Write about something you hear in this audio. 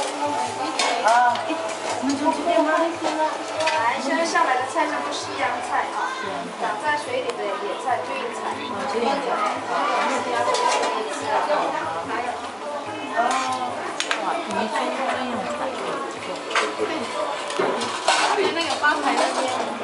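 Many voices of men and women chatter at once around the room.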